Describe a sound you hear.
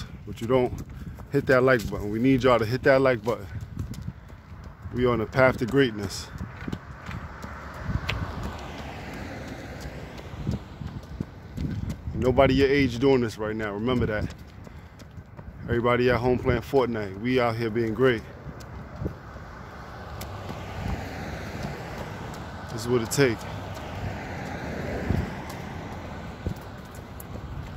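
Footsteps patter on a pavement outdoors.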